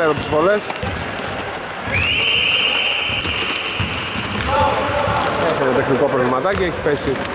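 Young men call out to each other in a large echoing hall.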